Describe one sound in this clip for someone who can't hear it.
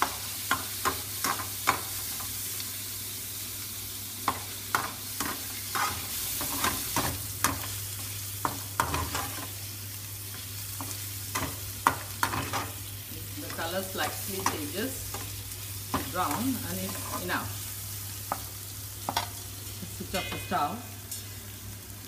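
A metal spatula scrapes and taps against a steel frying pan.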